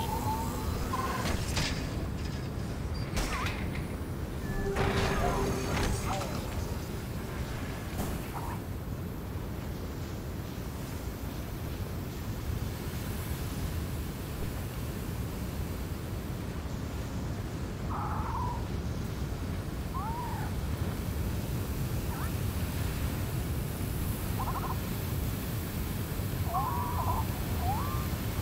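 Strong wind roars steadily, blowing sand.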